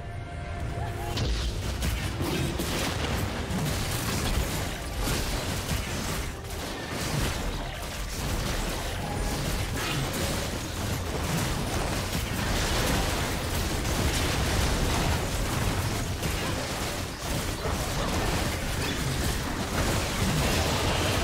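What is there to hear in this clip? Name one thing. Game spell effects and hits crackle and boom during a fight.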